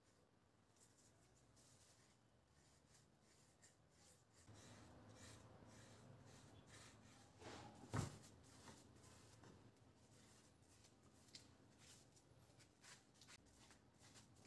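A paintbrush brushes wood stain onto wood.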